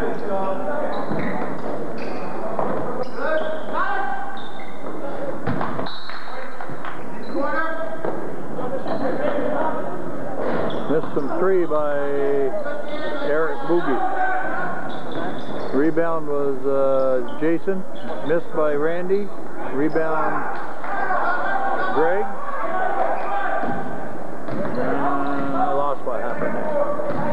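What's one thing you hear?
Men and women in a crowd talk and call out nearby in a large echoing hall.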